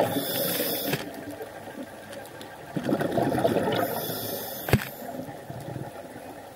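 Water rushes and hisses softly underwater.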